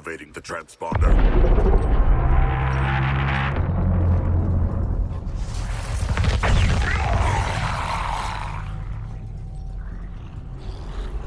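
A deep rumbling roar booms and slowly fades.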